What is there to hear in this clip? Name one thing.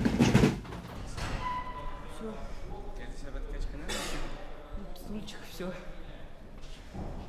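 A young man speaks calmly close by, in a large echoing hall.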